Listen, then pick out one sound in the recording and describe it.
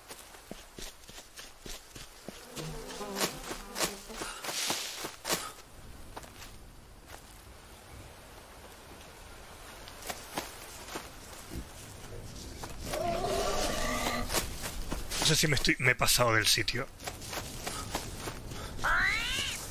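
Footsteps crunch and rustle through dense undergrowth.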